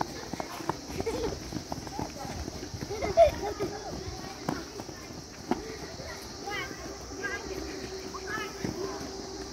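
Young children shout and squeal while playing outdoors.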